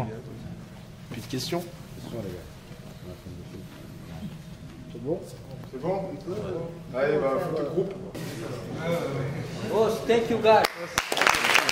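A young man speaks calmly to a group indoors.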